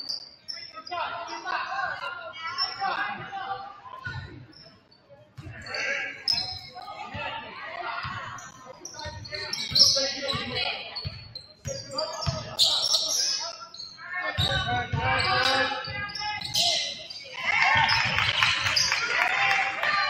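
A crowd chatters and cheers in an echoing gym.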